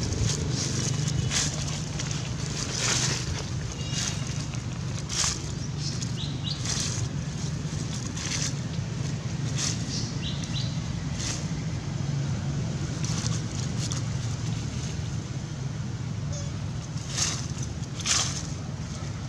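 Dry leaves rustle and crunch under a monkey's footsteps.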